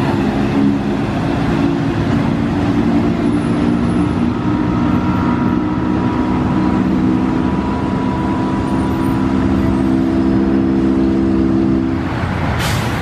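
A diesel city bus pulls away and drives off.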